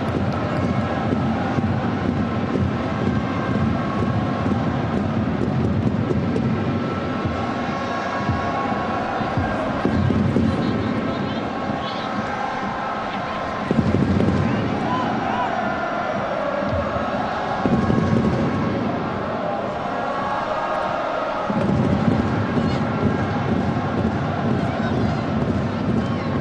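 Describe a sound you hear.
A large crowd roars and murmurs steadily in a stadium.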